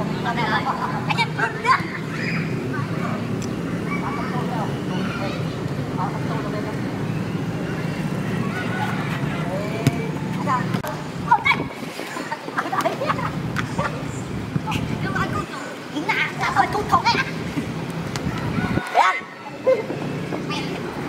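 Boys shout and call out across an open pitch.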